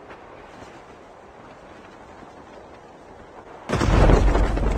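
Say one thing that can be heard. Wind rushes steadily past a descending parachute.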